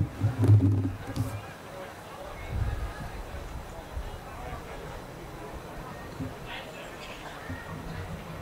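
Spectators murmur and chat quietly at a distance, outdoors.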